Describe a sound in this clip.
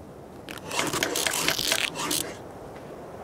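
A stone pick chops at a tree trunk in quick knocks.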